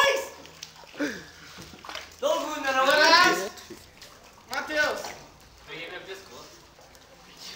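Young men shout and call out with animation outdoors.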